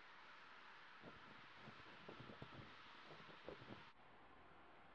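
A young woman speaks softly.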